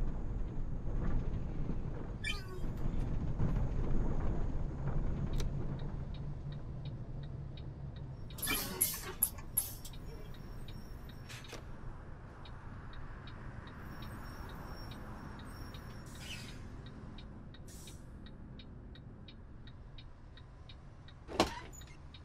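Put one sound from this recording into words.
A bus engine rumbles low and steady, louder at first and then quieter.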